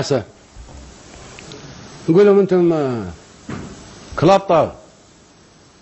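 An elderly man speaks slowly and forcefully into a microphone, with long pauses.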